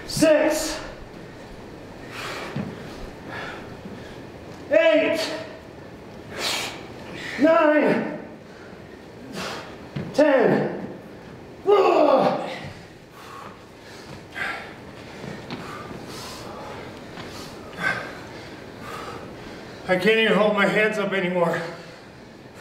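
A man speaks loudly, coaching with energy, in an echoing room.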